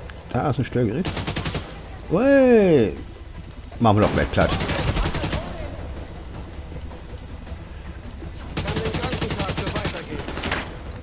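Rifles fire in rapid bursts.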